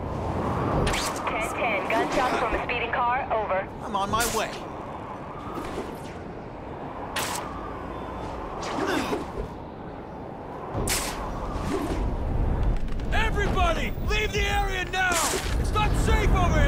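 Webs shoot out with sharp snapping whooshes, again and again.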